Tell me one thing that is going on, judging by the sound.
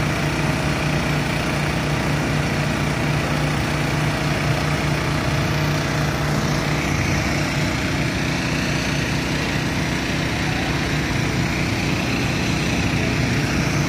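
Water gushes and splashes steadily nearby.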